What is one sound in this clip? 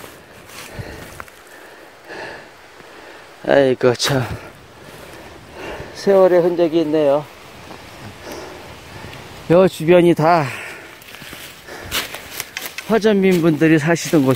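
Dry leaves crunch underfoot as someone walks.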